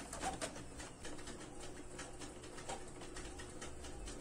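A printer whirs and clicks as it feeds paper.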